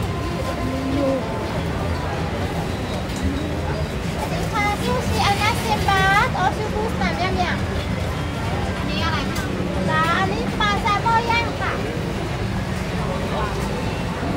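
A crowd murmurs steadily nearby.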